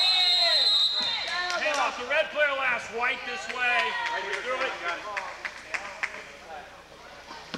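Young men shout to each other in a large echoing hall.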